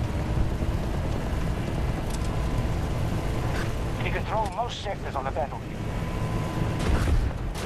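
Tyres roll over gravel.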